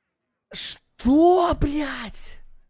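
A young man exclaims loudly in dismay close to a microphone.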